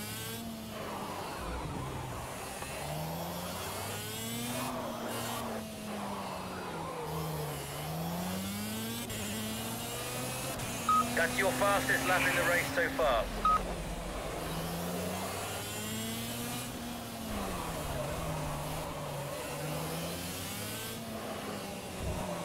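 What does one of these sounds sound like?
A kart engine buzzes and whines, rising and falling in pitch as it speeds up and slows down.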